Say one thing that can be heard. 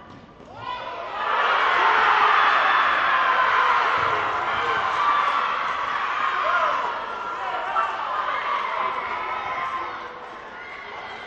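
A crowd of spectators cheers and shouts loudly in an echoing hall.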